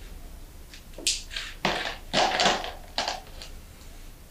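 Markers rattle and clatter in a cup.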